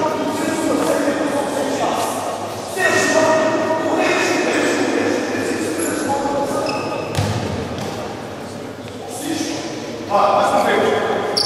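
Young players' voices call and chatter in a large echoing hall.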